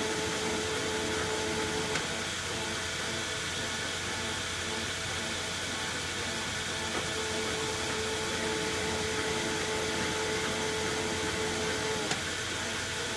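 A cutting tool scrapes and squeals against spinning metal.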